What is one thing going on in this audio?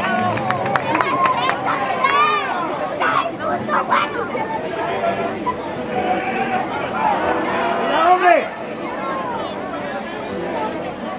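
A large crowd of spectators chatters and shouts outdoors.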